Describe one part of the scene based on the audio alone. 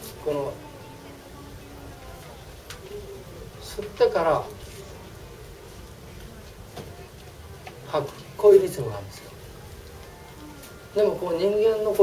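An older man speaks calmly in short phrases.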